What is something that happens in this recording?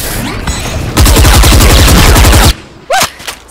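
A rifle fires a rapid burst of gunshots.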